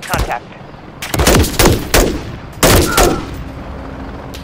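A rifle fires loud shots in quick bursts.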